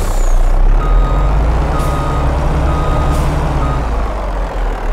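A reversing alarm beeps in a steady pattern.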